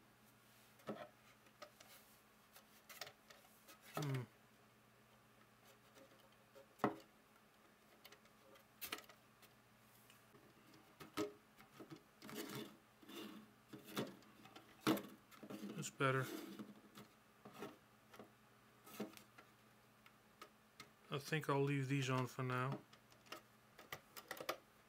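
Plastic toy parts click and knock against a wooden surface.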